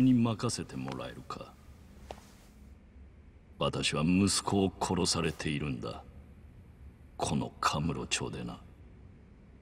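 An older man speaks slowly in a low, grave voice.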